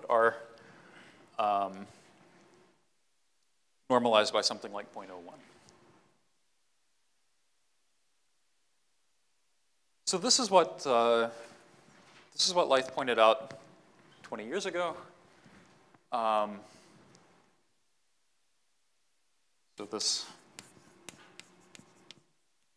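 A man lectures calmly into a clip-on microphone, in short bursts with pauses.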